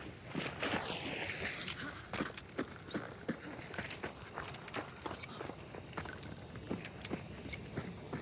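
Footsteps thud at a steady walking pace.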